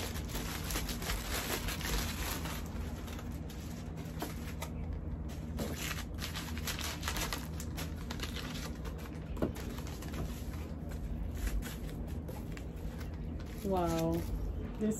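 Plastic wrapping crinkles and rustles as it is pulled open.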